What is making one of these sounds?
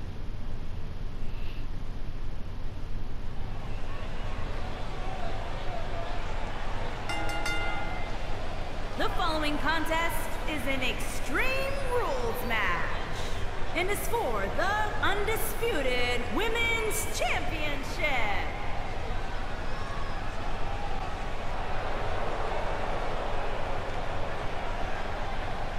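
A large crowd cheers and murmurs steadily.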